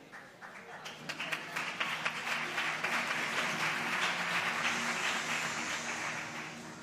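An audience applauds and cheers loudly in a large hall.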